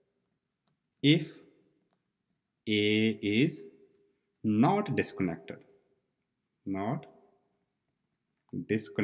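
A man speaks calmly and slowly into a close microphone, in short phrases with pauses.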